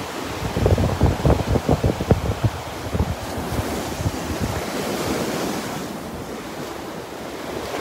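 Waves crash and break on the shore.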